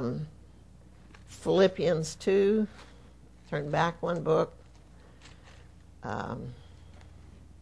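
An elderly woman speaks slowly and calmly into a microphone.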